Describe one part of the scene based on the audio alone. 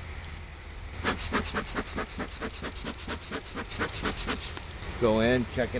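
A bee smoker puffs in quick bursts.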